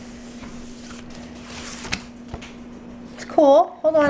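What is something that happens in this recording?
Paper peels away from a smooth surface.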